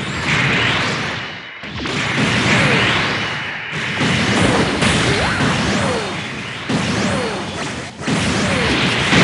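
A robot's jet thrusters roar in bursts.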